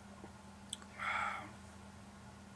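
A man hums with pleasure, close by.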